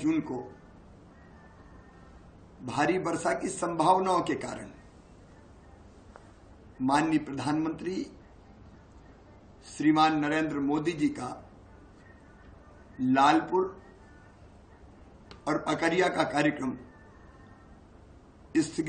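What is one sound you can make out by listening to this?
An older man speaks firmly into a close microphone, in bursts with pauses.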